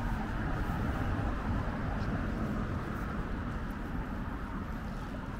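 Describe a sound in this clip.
Cars drive past on a nearby road with a steady low rumble.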